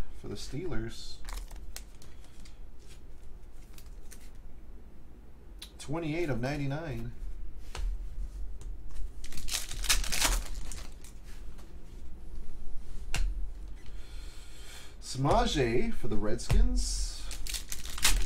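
Cards rustle and click as hands sort through them.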